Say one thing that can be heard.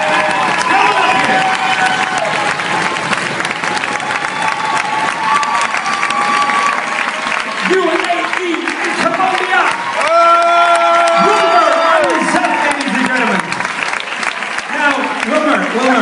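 A large crowd cheers and shouts loudly, close by.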